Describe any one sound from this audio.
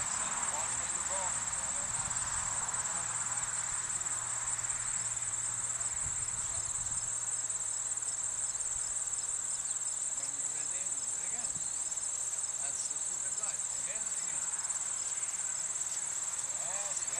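A horse's hooves thud softly on grass.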